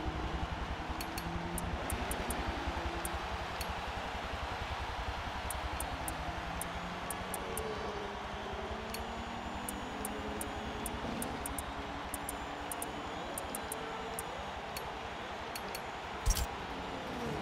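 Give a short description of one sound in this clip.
Soft electronic menu clicks tick as options are switched.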